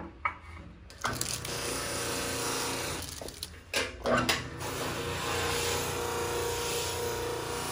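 A buffing wheel whirs as it spins.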